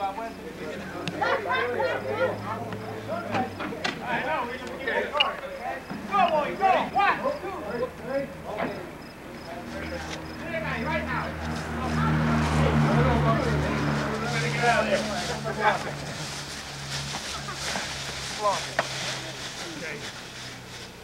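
Several men talk and call out to each other outdoors.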